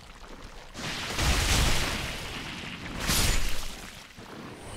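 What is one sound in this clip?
A heavy body thuds onto the ground.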